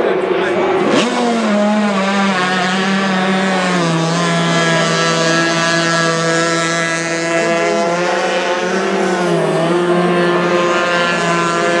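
An outboard racing hydroplane revs and pulls away at full throttle.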